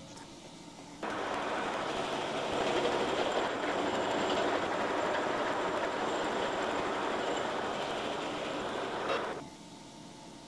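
A milling cutter grinds and rattles steadily through metal.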